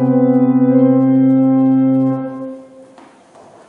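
A choir of young voices sings a held chord in a large echoing hall.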